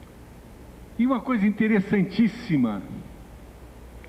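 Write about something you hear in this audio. An elderly man speaks calmly through a microphone, heard over a loudspeaker.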